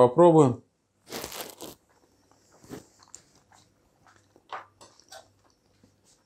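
A man chews food and smacks his lips.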